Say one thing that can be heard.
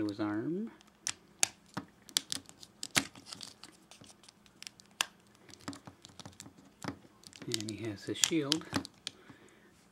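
Hard plastic parts click and tap as they are handled.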